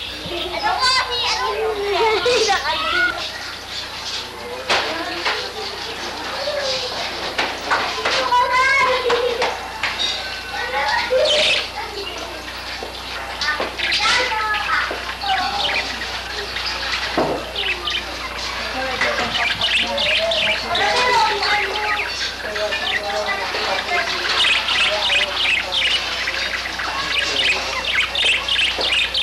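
Budgerigars chirp and warble close by.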